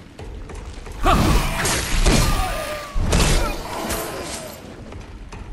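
A creature snarls and shrieks nearby.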